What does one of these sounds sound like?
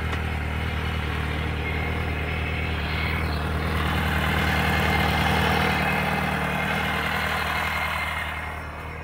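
An inline four-cylinder motorcycle engine idles cold.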